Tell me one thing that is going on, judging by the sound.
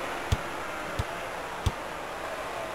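A basketball bounces on a hardwood court a few times.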